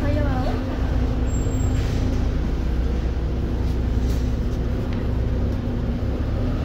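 A bus engine hums and rumbles steadily.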